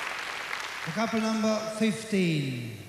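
A man announces loudly through a microphone.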